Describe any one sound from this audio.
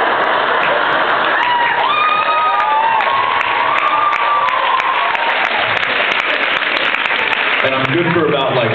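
A crowd cheers and screams loudly in a large hall.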